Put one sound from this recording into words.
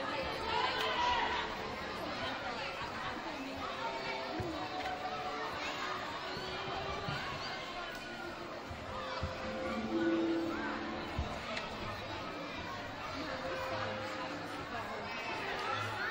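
Children's voices shout and squeal in the distance.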